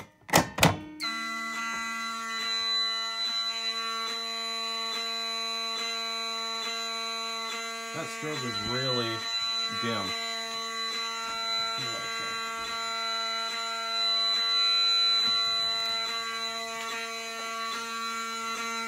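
A fire alarm blares with a loud, steady electronic tone.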